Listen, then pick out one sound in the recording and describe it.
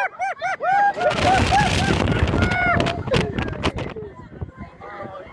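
Wind rushes past as a roller coaster speeds along.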